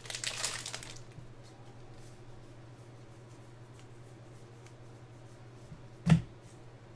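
Trading cards flick and rustle as they are sorted by hand.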